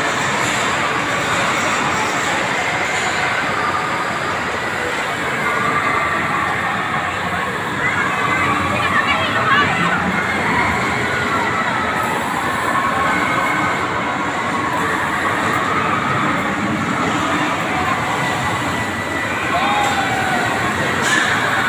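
A spinning fairground ride whirs and rumbles steadily.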